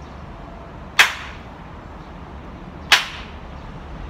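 A man claps his hands twice, sharp and loud.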